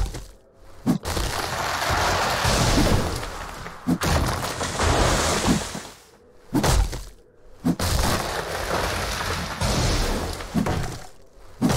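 Snowy branches rustle and swish.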